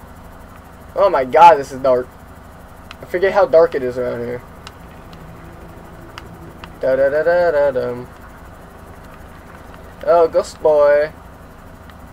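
A young man talks with animation into a microphone, in short bursts.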